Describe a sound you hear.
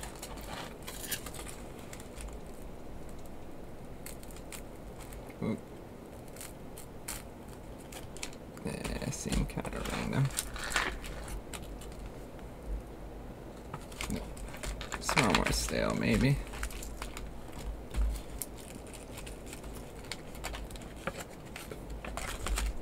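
Plastic packaging crinkles and rustles as hands open it.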